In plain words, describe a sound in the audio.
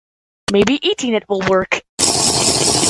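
A young-sounding cartoon voice speaks brightly.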